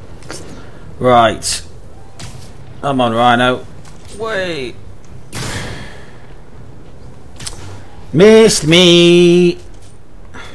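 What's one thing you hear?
A man talks into a microphone in short bursts, with animation.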